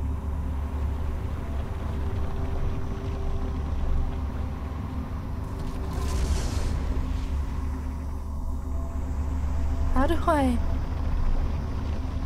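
A large spotlight machine hums steadily.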